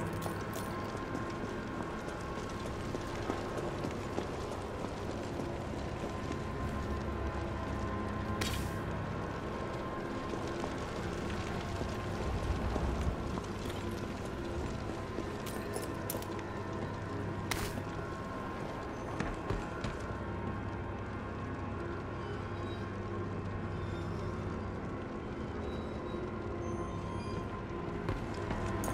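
Footsteps walk steadily over a hard floor.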